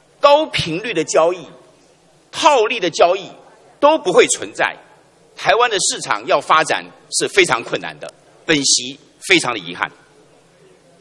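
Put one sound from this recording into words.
A middle-aged man speaks formally into a microphone in a large hall.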